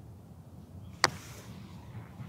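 A golf putter taps a ball with a sharp click.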